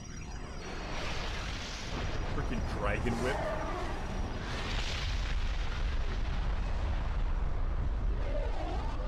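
A sword swooshes through the air with a whooshing rush.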